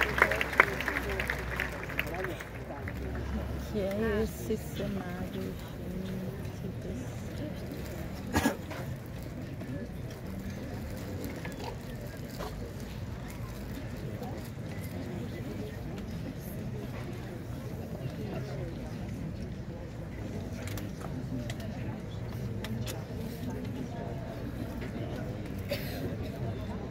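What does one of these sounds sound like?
An orchestra plays softly in a large open-air space.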